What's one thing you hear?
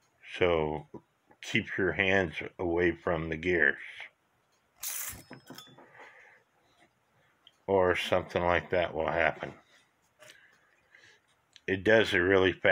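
Small metal parts click softly as they are handled.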